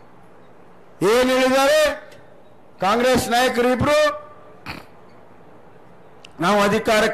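A man speaks loudly into a microphone to a crowd.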